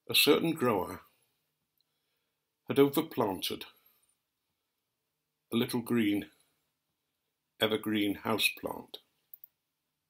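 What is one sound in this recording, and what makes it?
An elderly man speaks calmly and close by, in short phrases with pauses.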